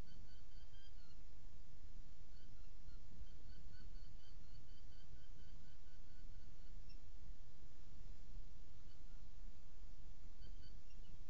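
Young birds chirp in short, repeated calls.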